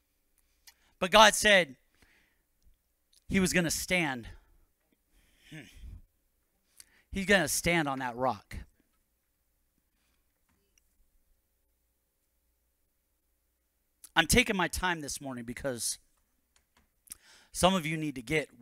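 A middle-aged man speaks through a microphone in short, measured phrases with long pauses.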